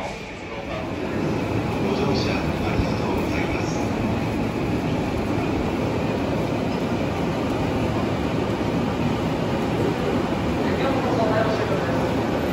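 A crowd of people murmurs nearby.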